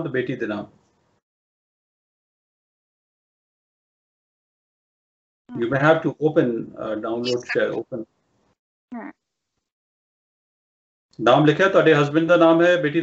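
A middle-aged man speaks calmly over an online call, with pauses.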